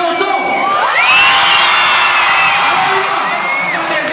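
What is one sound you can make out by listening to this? A crowd of fans screams loudly.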